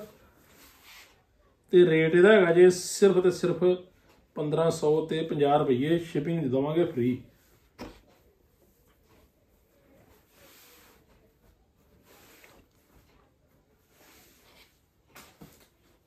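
Cloth rustles as it is unfolded and moved.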